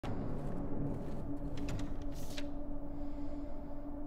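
Paper rustles as a sheet is picked up and unfolded.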